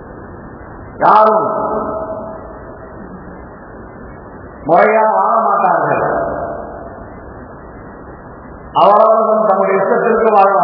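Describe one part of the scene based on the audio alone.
An elderly man recites in a slow, drawn-out chanting voice, heard through a microphone.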